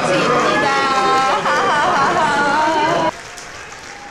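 A young woman exclaims with animation, close by.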